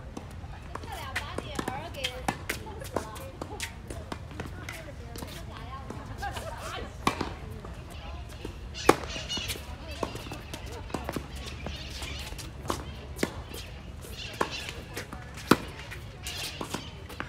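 Sneakers squeak and scuff on a hard court.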